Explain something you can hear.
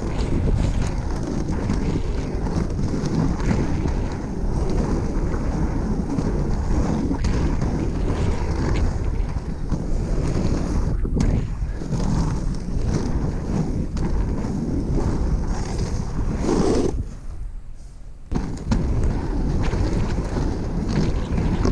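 Inline skate wheels roll and rumble over rough tarmac.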